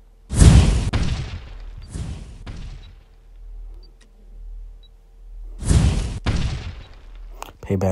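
Game sound effects whoosh as cards are played.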